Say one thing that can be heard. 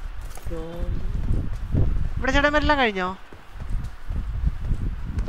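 Footsteps thud quickly on the ground as a game character runs.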